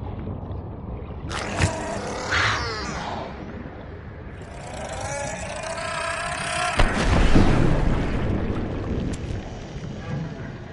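Water rumbles low and muffled all around, as if heard from underwater.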